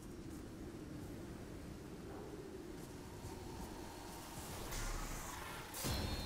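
Footsteps crunch on sand and dry grass.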